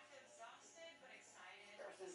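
Electric hair clippers buzz close by.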